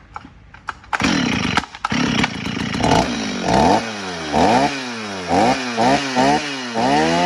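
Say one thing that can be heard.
A chainsaw engine runs loudly and revs up and down.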